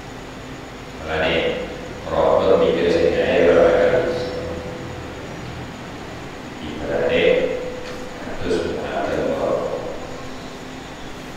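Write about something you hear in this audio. A middle-aged man speaks calmly into a microphone, pausing often.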